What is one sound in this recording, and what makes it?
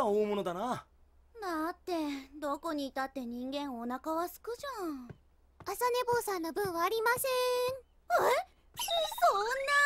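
A young woman speaks in a worried voice.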